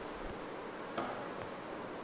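A pen taps against a hard board.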